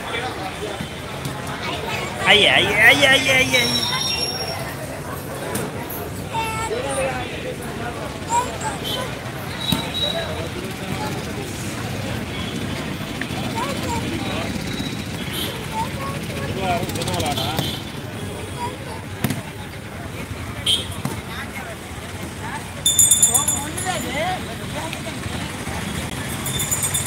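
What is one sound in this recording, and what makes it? A crowd murmurs outdoors in a busy open space.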